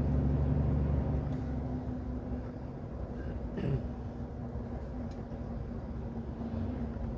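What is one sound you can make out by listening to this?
A truck engine hums steadily nearby.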